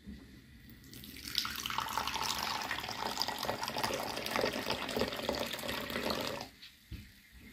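Tea pours into a bowl with a steady splashing trickle.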